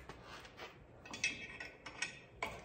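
A metal bracket rattles as a tool is fitted into it.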